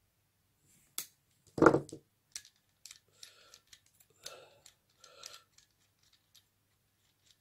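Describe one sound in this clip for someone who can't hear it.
Small metal parts click and tap as a man handles them with pliers.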